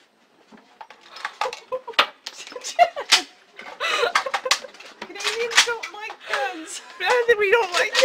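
A young woman laughs and talks excitedly close by.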